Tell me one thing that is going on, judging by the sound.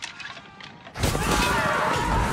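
A crowd of men shouts in battle.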